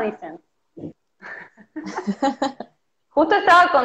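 Two women laugh over an online call.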